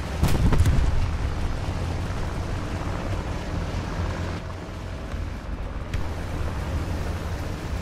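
Tank tracks clatter over sand.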